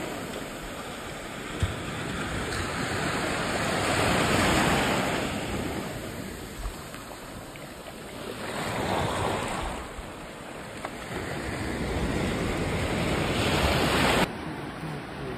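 Small waves wash onto the shore in swelling surges.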